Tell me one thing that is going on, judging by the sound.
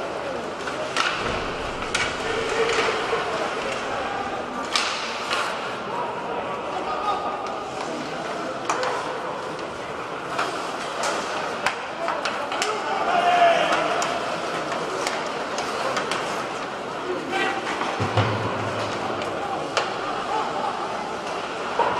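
Hockey sticks click against the puck.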